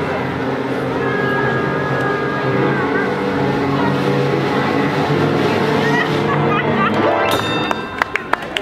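A trombone plays a lively tune nearby.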